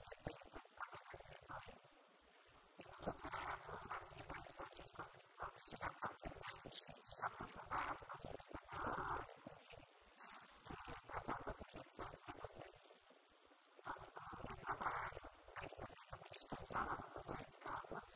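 A young woman speaks calmly into a microphone, heard through a loudspeaker in an echoing room.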